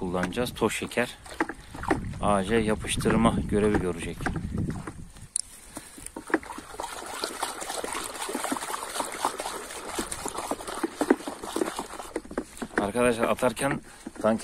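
A brush stirs thick paint in a bucket with soft, wet sloshing.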